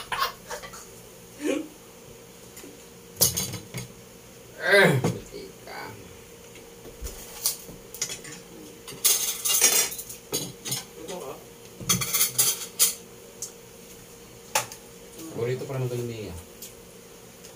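Young men talk and laugh casually nearby.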